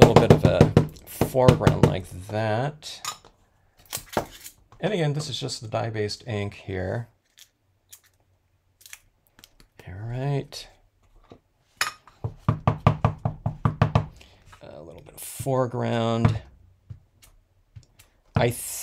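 An ink pad taps repeatedly on paper.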